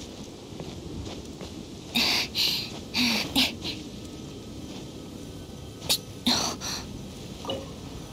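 Hands and feet scrape and thud while climbing rock.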